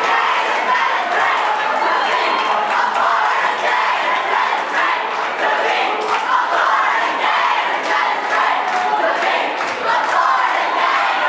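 Many people clap their hands.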